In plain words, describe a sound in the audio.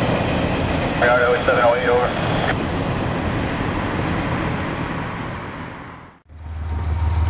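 A railway crossing bell rings steadily nearby.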